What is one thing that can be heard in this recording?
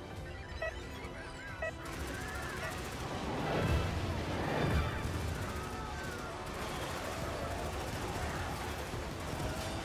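Gunfire rattles rapidly throughout.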